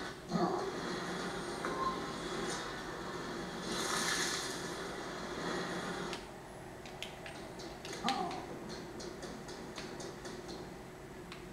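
Video game music and sound effects play from a television speaker.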